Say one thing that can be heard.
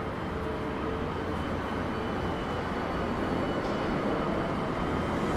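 City street traffic hums steadily outdoors.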